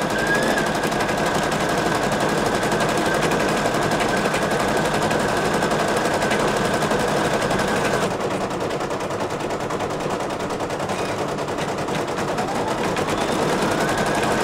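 An embroidery machine stitches with a fast, steady rattling hum.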